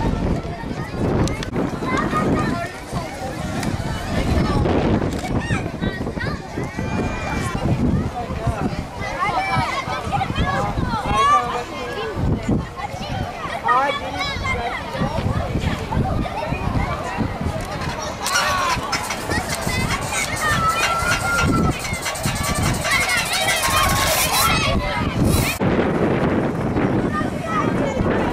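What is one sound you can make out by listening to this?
A crowd of children and adults chatters outdoors.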